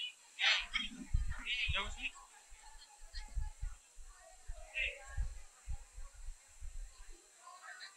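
Young women chatter and laugh together nearby.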